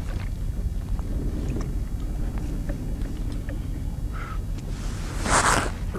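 Wind rumbles against the microphone outdoors on open water.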